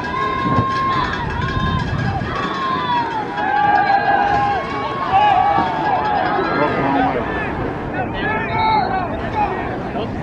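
A crowd of young men on the sideline shouts and cheers loudly outdoors.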